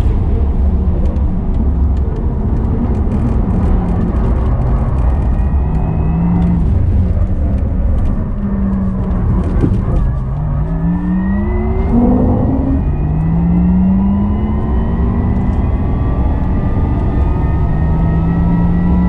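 Tyres rumble over the track.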